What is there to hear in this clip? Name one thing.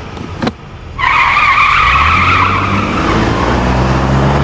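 Car tyres spin and screech on concrete.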